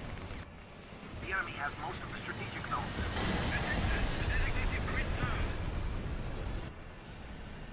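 A shell explodes close by with a deep rumble.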